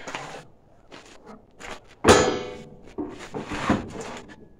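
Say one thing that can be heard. Metal tools clatter on a truck bed.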